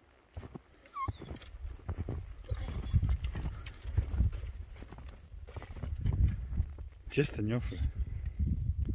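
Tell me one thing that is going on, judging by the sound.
Dogs whine eagerly close by.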